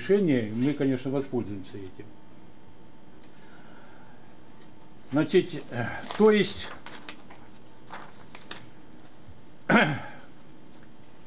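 A man lectures calmly into a microphone in a large room, pausing between phrases.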